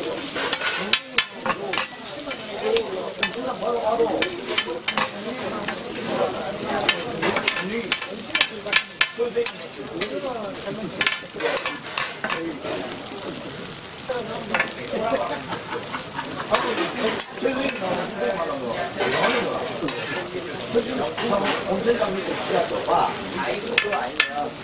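A pancake sizzles on a hot griddle.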